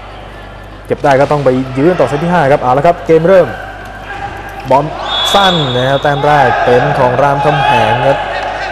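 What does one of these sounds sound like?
A volleyball is struck by hand in an indoor hall.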